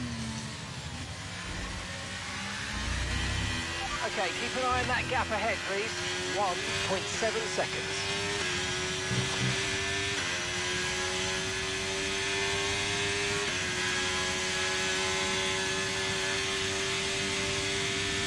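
A racing car engine roars and climbs in pitch through the gears.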